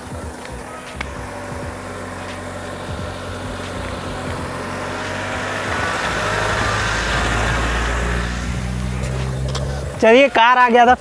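A car engine hums as a car drives slowly closer and passes by.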